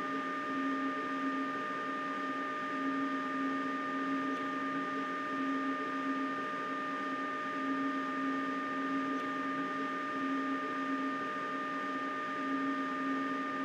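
A train hums steadily along the rails.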